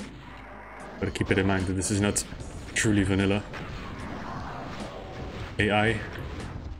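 Monsters roar and growl loudly.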